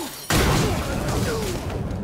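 An electric weapon crackles and zaps.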